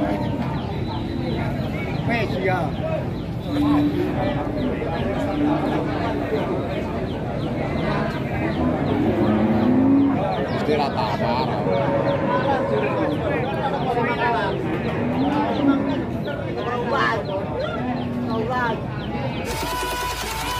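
A crowd of men chatters loudly outdoors.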